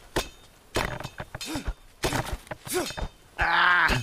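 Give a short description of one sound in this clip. A machete swishes through plants.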